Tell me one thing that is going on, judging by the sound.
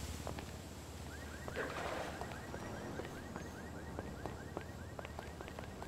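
Footsteps tap steadily on wooden stairs.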